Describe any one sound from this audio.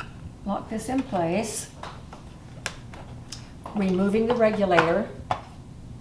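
A plastic valve clicks into place on a pressure cooker lid.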